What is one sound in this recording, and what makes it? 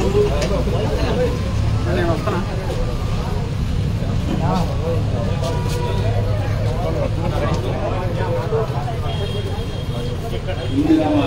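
A crowd of men talks and shouts loudly outdoors.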